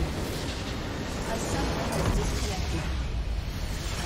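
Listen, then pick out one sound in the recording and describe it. A base crystal explodes with a deep boom.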